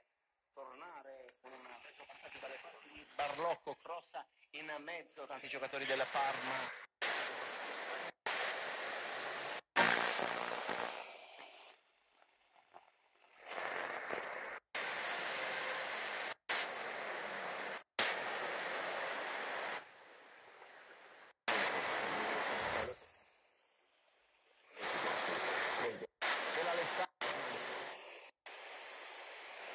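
A small radio plays snatches of broadcast sound through its speaker as it is tuned.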